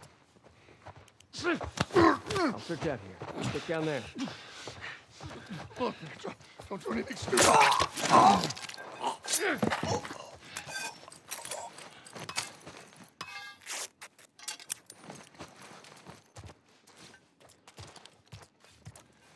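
Footsteps scuff softly on a hard floor.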